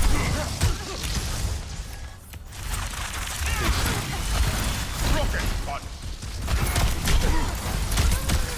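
Guns fire in rapid bursts with heavy thuds.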